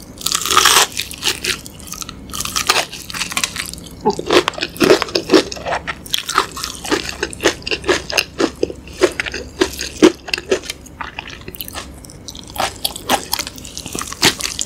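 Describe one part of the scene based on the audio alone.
A woman chews food wetly and noisily, close to a microphone.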